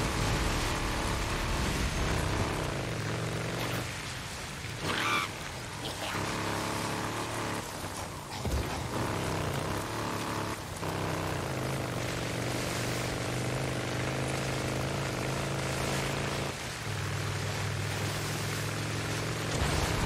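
Wind and rain rush steadily outdoors.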